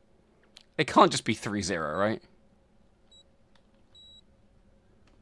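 Keypad buttons beep softly as they are pressed.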